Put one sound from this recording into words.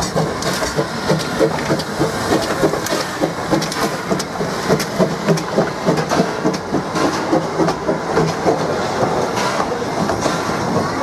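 A steam locomotive chuffs rhythmically as it pulls away.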